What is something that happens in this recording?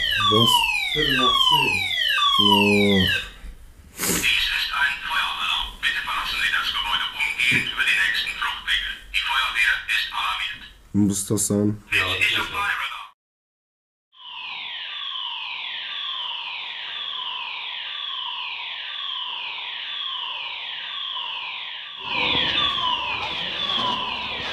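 A fire alarm wails with rapid falling sweeps.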